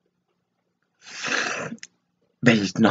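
An elderly woman sighs or sobs softly.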